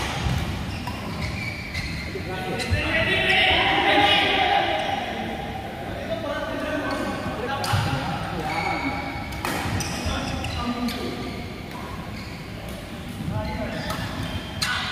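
Men call out and talk to each other across the hall.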